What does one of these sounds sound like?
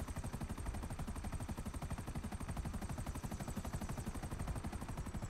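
Helicopter rotor blades chop rapidly and steadily.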